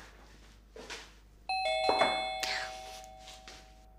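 A woman sets a plate down on a table.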